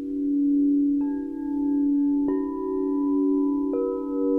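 A crystal singing bowl is struck, adding a new bright ringing tone.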